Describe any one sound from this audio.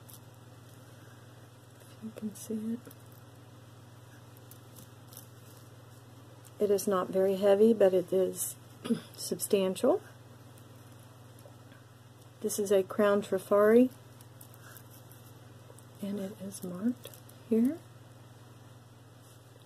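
Small beads click softly against each other.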